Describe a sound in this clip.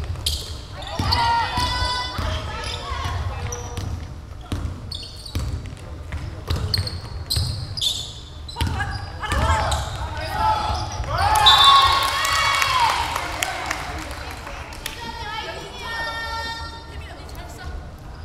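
Sneakers squeal sharply on a hard court floor.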